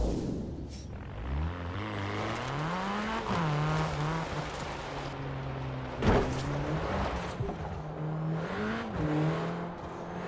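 A car engine revs up and shifts through gears as the car accelerates.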